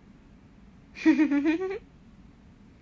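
A young woman laughs briefly.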